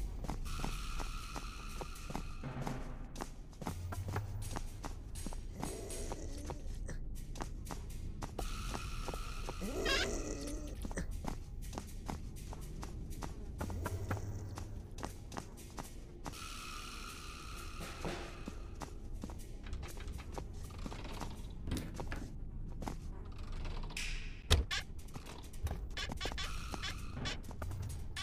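Footsteps thud steadily across wooden floorboards.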